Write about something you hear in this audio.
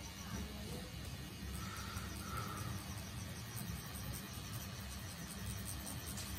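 A tattoo needle taps quickly and steadily against skin.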